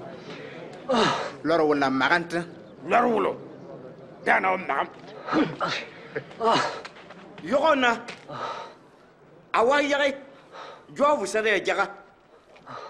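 A man shouts mockingly close by.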